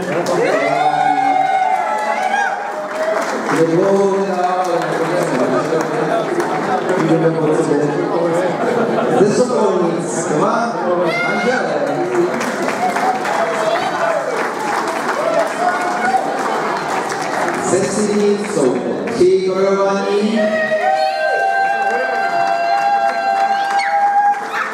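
A crowd of men and women sings together loudly in a large echoing hall.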